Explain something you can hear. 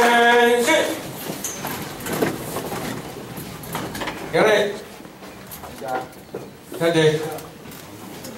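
A man speaks loudly into a microphone over a loudspeaker in an echoing hall.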